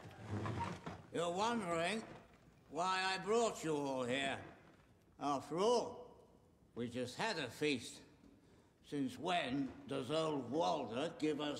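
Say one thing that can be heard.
An elderly man speaks loudly and slowly in an echoing hall.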